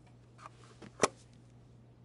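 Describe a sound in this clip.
A small metal object knocks against a hard surface.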